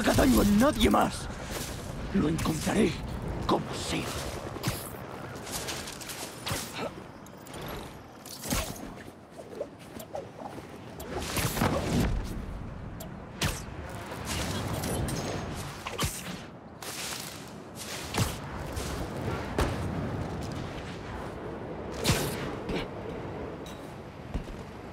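Wind rushes past during fast swinging through the air.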